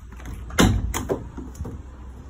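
A van door opens with a clunk.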